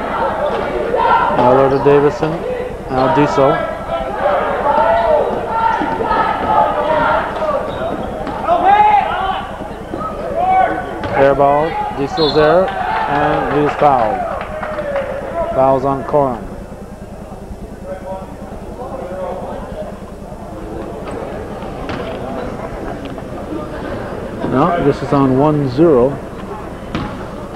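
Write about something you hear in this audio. Men shout and cheer nearby in an echoing gym.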